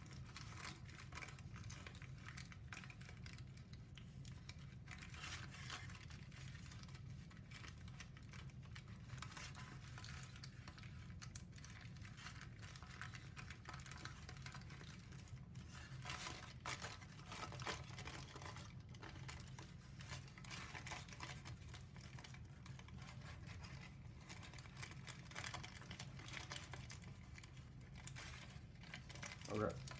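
Stiff paper crinkles and rustles as it is folded.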